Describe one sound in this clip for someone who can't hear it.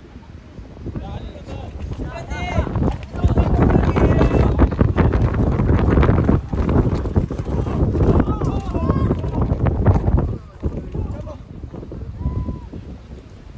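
Young adults shout to each other across an open field.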